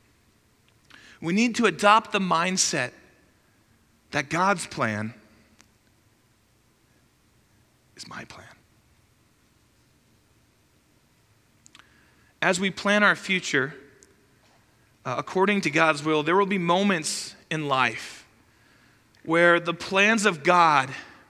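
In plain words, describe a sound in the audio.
A man speaks calmly into a headset microphone, with pauses between phrases.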